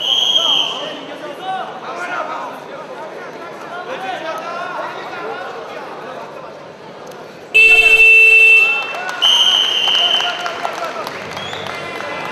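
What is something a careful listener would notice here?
A large crowd murmurs and calls out in an echoing hall.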